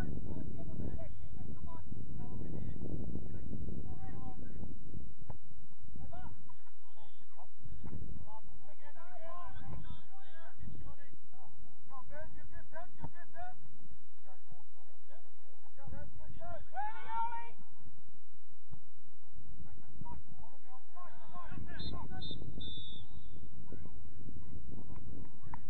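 Players call out to each other across an open field, heard from a distance.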